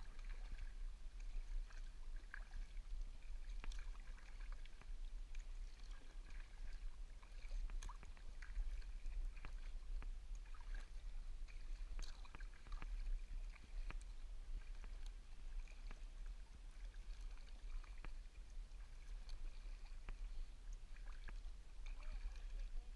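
Water ripples and laps softly against a kayak's hull.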